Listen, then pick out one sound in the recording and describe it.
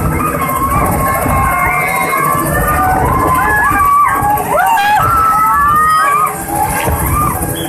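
A helicopter's rotor thumps and whirs loudly close by.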